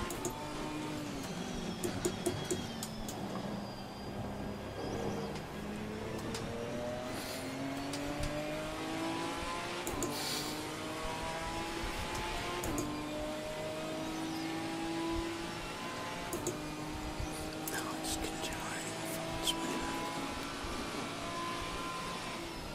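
Rain patters steadily on the car.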